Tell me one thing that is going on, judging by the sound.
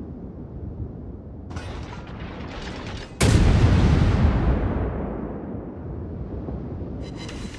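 A low engine rumble drones steadily.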